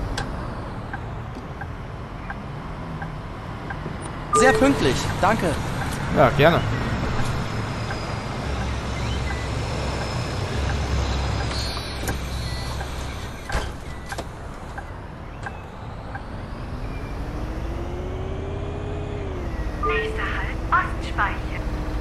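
A bus engine hums low and steady.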